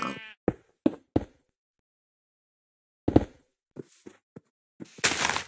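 A shovel digs into dirt and gravel in short crunching bursts.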